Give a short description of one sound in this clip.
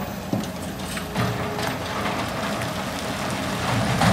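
Rocks crash into a truck bed.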